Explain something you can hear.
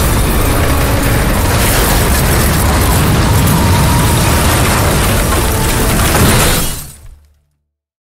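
Debris crashes and clatters through the air.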